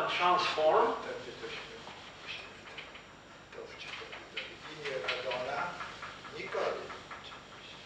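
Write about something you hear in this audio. A felt eraser rubs across a chalkboard.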